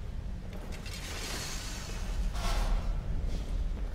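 A heavy metal gate rattles and slams shut.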